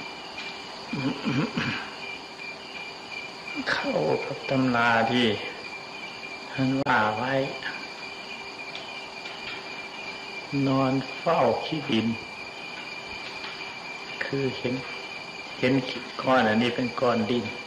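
An elderly man speaks calmly and slowly, with long pauses.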